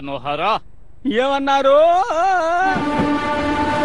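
A man exclaims in surprise.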